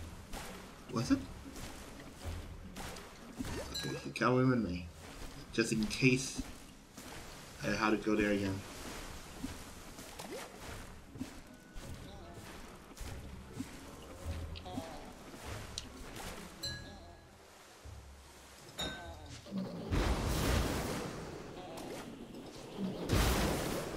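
Oars splash softly as a small boat is rowed through water.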